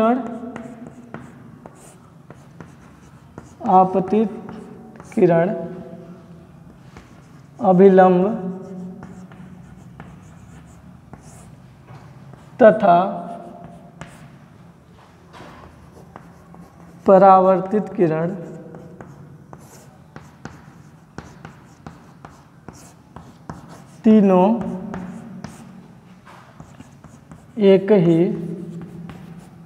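A young man speaks slowly and clearly in short phrases, close by.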